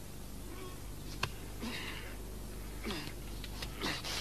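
A young man breathes heavily and groans close by.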